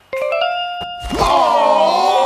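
Cartoon animals howl loudly together.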